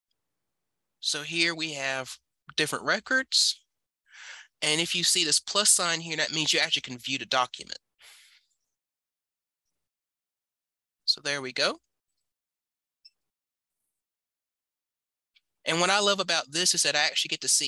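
A woman speaks calmly over an online call, in bursts with pauses.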